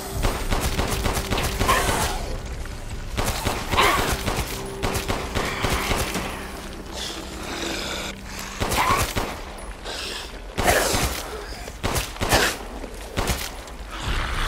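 A pistol fires loud shots one after another.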